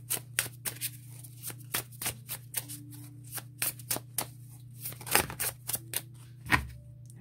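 Playing cards riffle and click quickly as a deck is shuffled.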